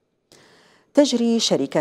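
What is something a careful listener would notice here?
A young woman speaks clearly and steadily into a microphone.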